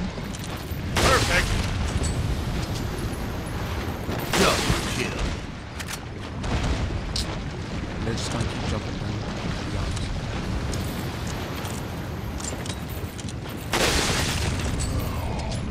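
A rifle fires loud, echoing shots, a few seconds apart.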